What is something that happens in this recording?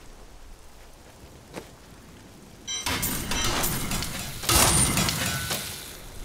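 A fiery magic ring flares up with a rushing whoosh.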